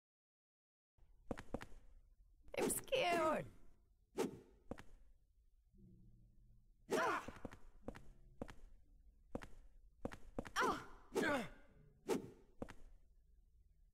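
Heavy blows thud and swish in a fight.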